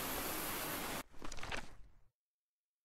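A book flips open with a papery rustle.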